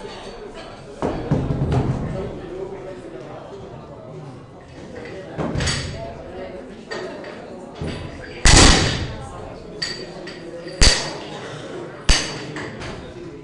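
Heavy weight plates clang and thud on a metal bar and the floor.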